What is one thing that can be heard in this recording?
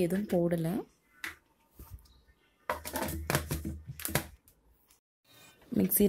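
A plastic lid clicks onto a jug.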